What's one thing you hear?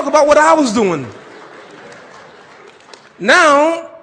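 An audience murmurs and laughs.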